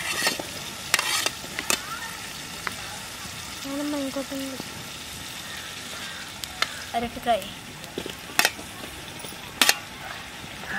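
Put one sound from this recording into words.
A metal spoon clinks against a steel pot.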